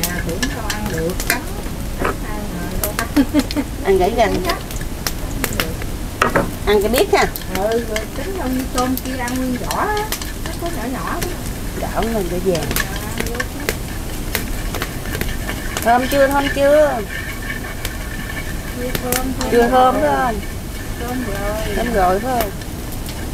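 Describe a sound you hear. Food sizzles in a hot wok.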